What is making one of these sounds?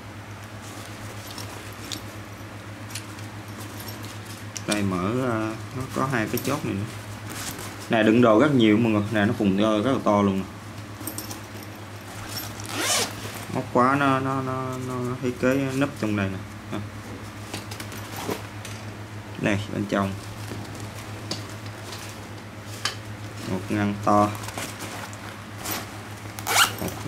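Plastic buckles click.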